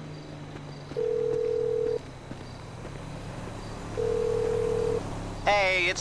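A phone line rings with long, steady tones through an earpiece.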